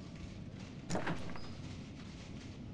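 A door opens.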